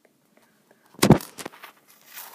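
A plastic bottle knocks down onto a stone counter.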